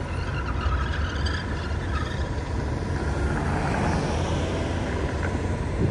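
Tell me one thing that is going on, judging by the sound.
A car drives past on a paved street.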